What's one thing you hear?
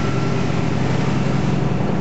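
A truck passes close by.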